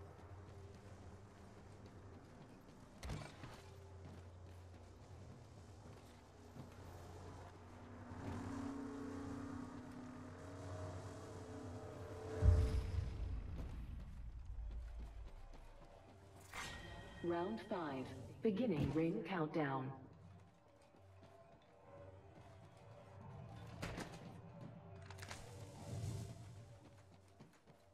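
Footsteps clatter on a metal floor.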